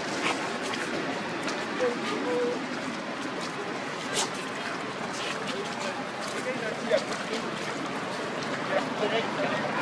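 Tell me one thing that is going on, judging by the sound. Monkeys rustle dry leaves on dirt as they walk.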